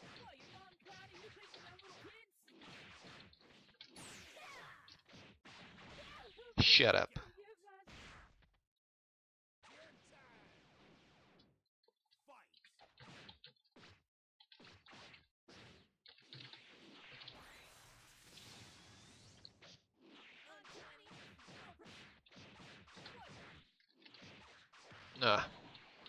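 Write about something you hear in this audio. Punches and kicks land with sharp, quick thuds.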